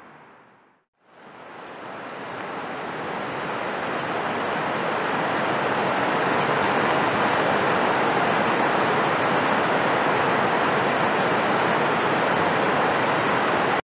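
Water rushes loudly down a rocky waterfall, growing louder as it fades in.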